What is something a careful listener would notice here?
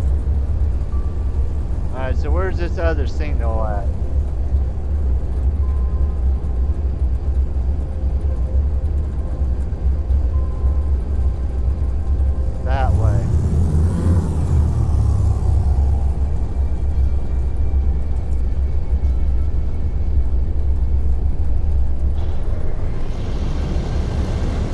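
A spaceship engine drones steadily and low.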